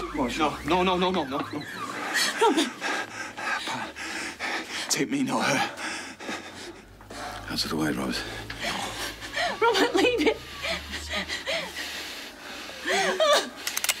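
A middle-aged man speaks urgently and pleadingly.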